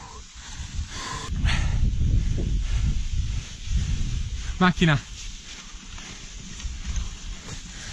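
A bike ski hisses and scrapes over packed snow.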